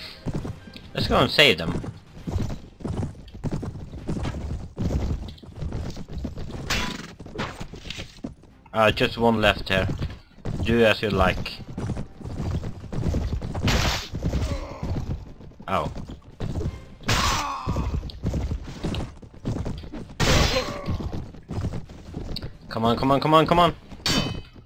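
A horse gallops with quick, rhythmic hoofbeats.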